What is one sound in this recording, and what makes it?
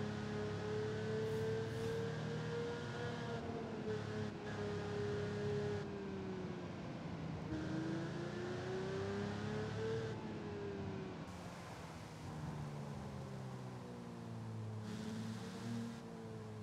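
A sports car engine drones steadily, its pitch rising and falling as the car speeds up and eases off.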